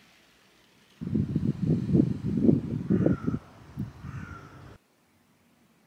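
Wind gusts and rumbles outdoors.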